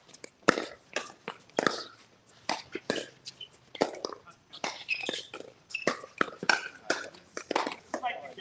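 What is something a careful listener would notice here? Players' shoes squeak on the hard court.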